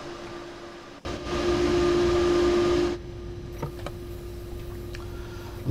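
A train's engine hums steadily from inside the cab.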